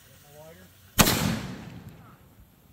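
An aerial firework shell launches with a sharp thump.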